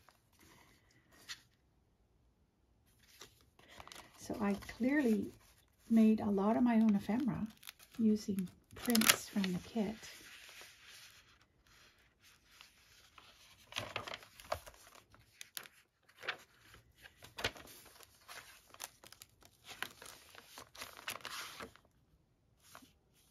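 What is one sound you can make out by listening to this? Paper pages rustle and flip as they are turned by hand.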